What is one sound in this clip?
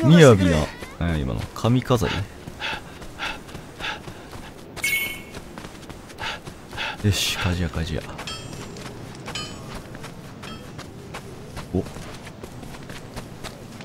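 Quick footsteps patter on packed dirt.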